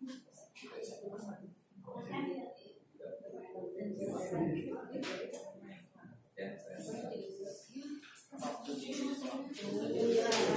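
Several men and women talk at once in small groups nearby, in a room with some echo.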